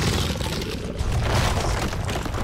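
A burst of fire whooshes loudly.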